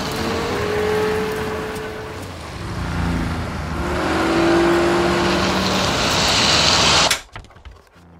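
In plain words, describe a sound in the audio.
A car engine roars loudly.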